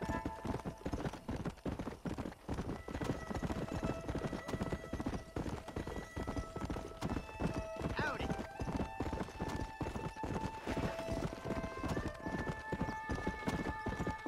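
Horse hooves gallop rapidly on a dirt trail.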